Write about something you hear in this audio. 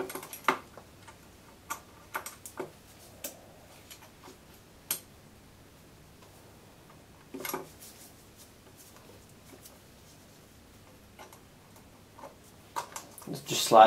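Small plastic and metal parts click and tap as they are handled.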